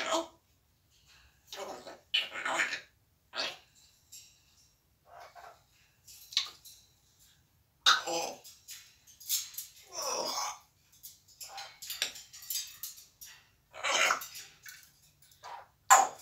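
A parrot squawks and chatters in short bursts close by.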